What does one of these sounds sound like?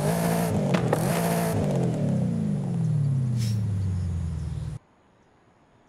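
A car engine roars and then slowly winds down.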